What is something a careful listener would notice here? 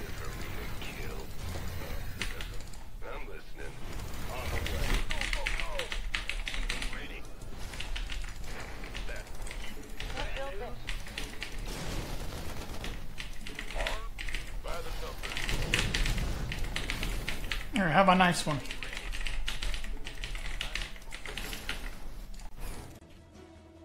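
Game gunfire and explosions crackle steadily.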